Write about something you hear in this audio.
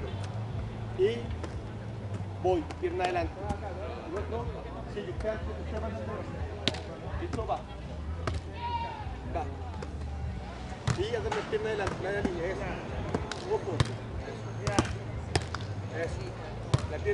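A volleyball is hit with dull thumps.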